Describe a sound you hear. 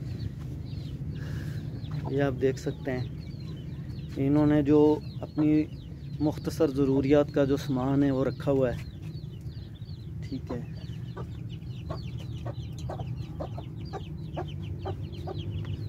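A hen clucks nearby.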